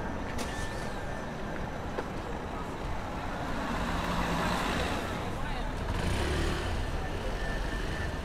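A scooter motor buzzes nearby.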